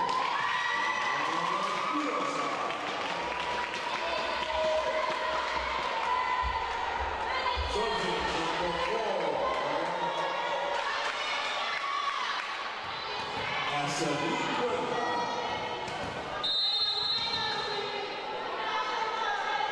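Young women call out to each other across a large echoing hall.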